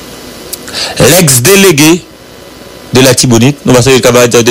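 A man speaks firmly and loudly nearby.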